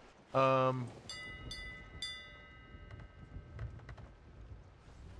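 A ship's bell rings out with a ringing tone.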